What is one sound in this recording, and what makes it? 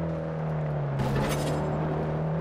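A car crashes into a roadside sign with a sharp bang.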